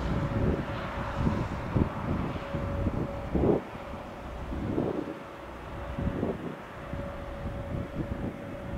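A jet airliner's engines whine and rumble steadily in the distance.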